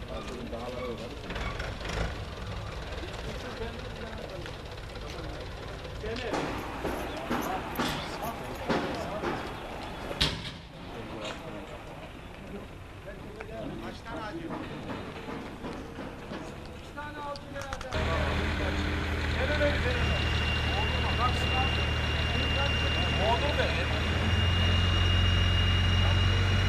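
Men talk outdoors nearby.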